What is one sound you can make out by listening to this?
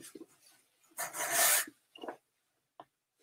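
Fabric rustles and swishes as it is shaken out.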